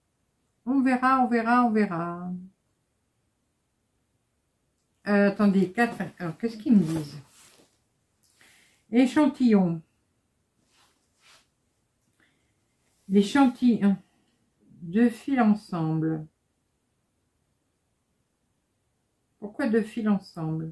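A middle-aged woman speaks calmly and close to a microphone, in short bursts with pauses.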